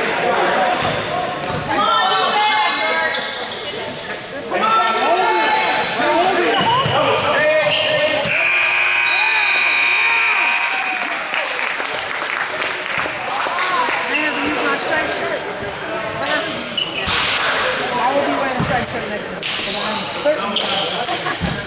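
Basketball sneakers squeak on a hardwood court in an echoing gym.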